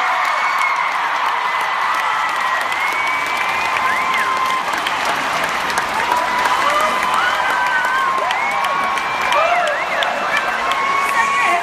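A large crowd cheers and screams loudly in a vast open arena.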